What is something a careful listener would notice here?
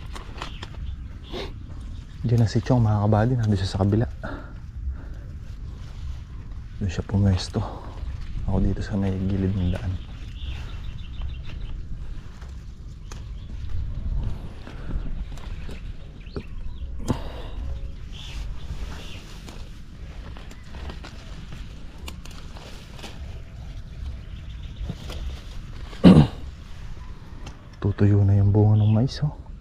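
Wind rumbles outdoors and rustles leafy plants.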